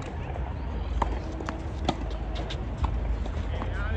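A tennis ball pops off a racket on an outdoor court.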